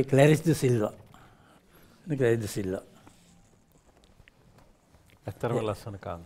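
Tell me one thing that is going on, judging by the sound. A middle-aged man speaks with animation into a close microphone, in short bursts.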